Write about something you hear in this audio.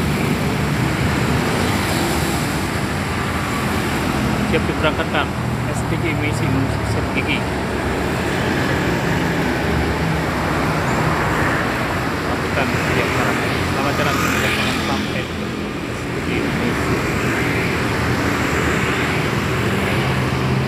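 Traffic roars steadily along a busy road outdoors.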